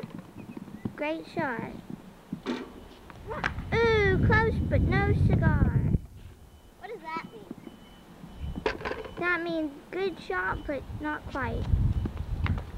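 A young boy talks excitedly close by.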